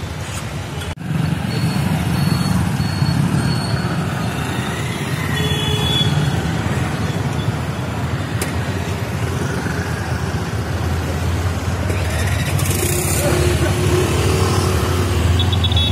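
Motorcycle engines rumble past on a busy street.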